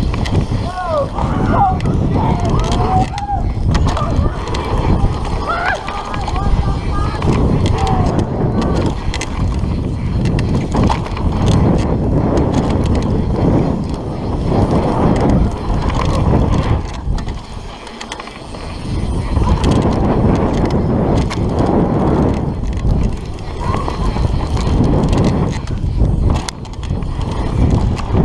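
Mountain bike tyres roll fast downhill over a dirt trail.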